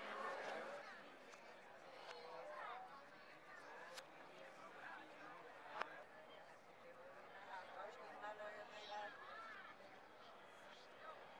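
Voices of a crowd murmur outdoors.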